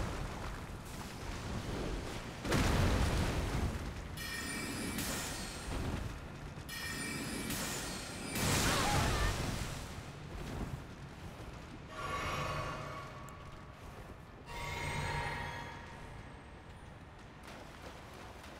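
Heavy blows and crashes ring out in a fight.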